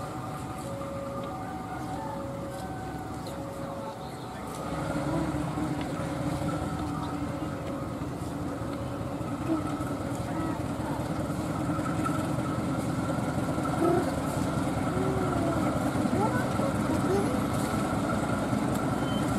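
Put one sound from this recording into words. A diesel locomotive engine rumbles steadily and grows louder as the train starts to pull away.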